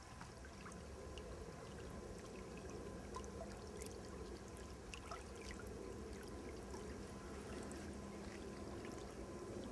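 Small lake waves lap gently on a pebble shore.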